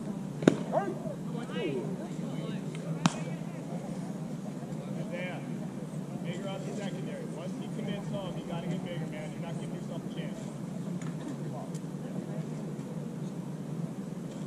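Men call out at a distance across an open field.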